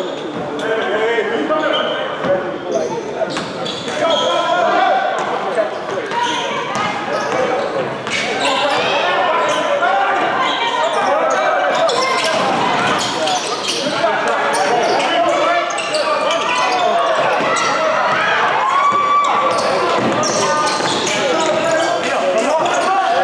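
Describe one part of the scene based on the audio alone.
A crowd of spectators chatters and shouts.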